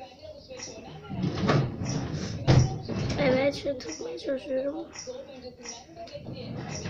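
A young girl talks quietly close by.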